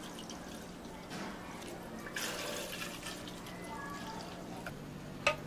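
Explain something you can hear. Milk pours from a carton into a plastic cup, splashing and gurgling.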